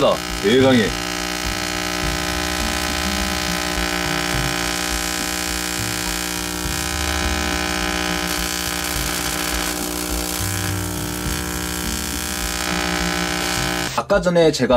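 A spark coil buzzes and crackles steadily.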